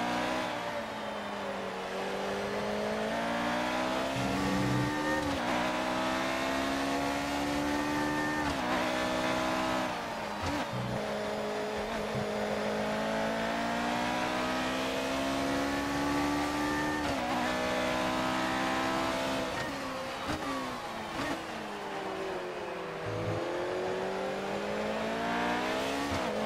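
A racing car engine screams, rising in pitch as it speeds up and dropping sharply at each gear change.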